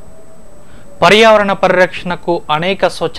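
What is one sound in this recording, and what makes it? A man speaks calmly and evenly, close to a microphone.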